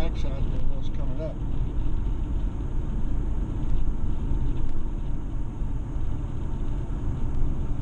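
Tyres roll on asphalt with a low rumble.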